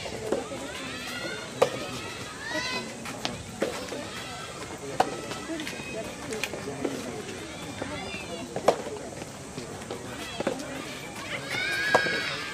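Tennis balls are struck with rackets in a quick rally outdoors.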